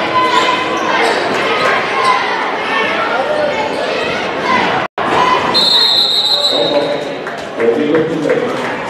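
A crowd in a large echoing gym cheers and shouts loudly.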